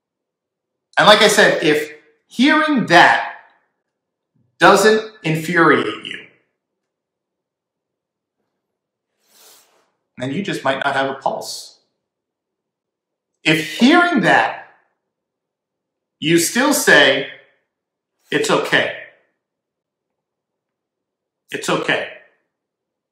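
A man speaks calmly into a close microphone in short phrases with pauses.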